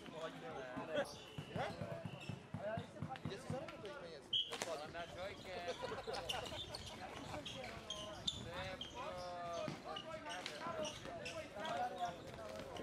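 Sticks knock against a plastic ball with sharp clacks.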